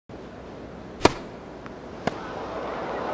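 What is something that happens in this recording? A tennis ball is struck hard by a racket.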